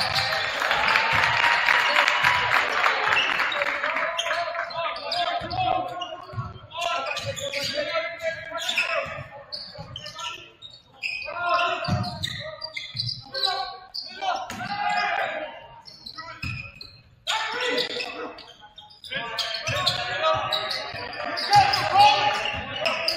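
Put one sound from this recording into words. Players and spectators call out, echoing in a large gym.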